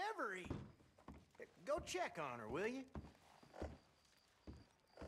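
Boots thud on wooden floorboards.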